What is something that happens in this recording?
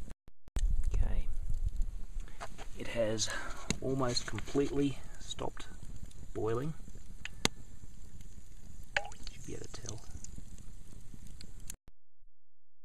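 Hot grease bubbles gently in a pot.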